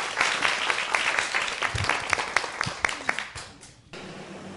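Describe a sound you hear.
An audience applauds, clapping briskly.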